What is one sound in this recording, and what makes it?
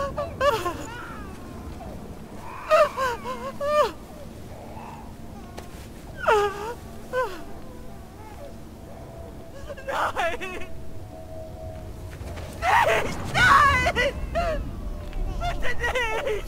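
A young woman cries out and pleads in distress, close by.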